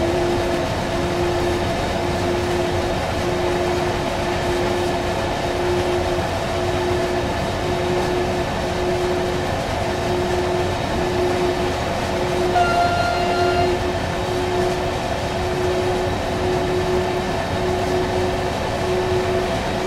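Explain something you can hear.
A freight train rumbles steadily along the rails.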